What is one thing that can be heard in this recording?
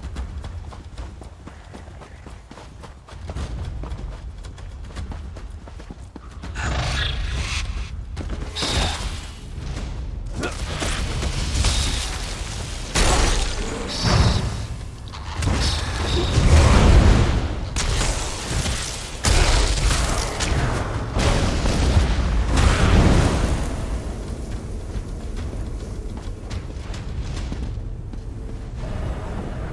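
Footsteps crunch through grass.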